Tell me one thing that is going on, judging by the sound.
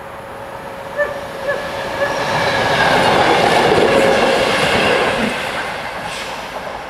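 A train rumbles past close by, rising and then fading.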